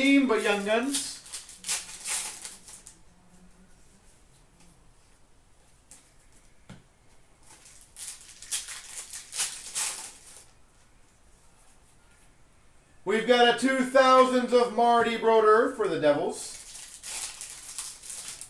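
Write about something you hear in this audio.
Cards rustle and flick as they are handled.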